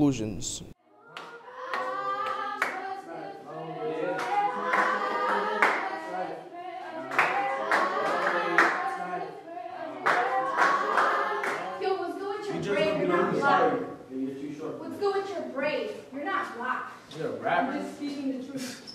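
Young men and women speak loudly and with animation in turn, in an echoing hall.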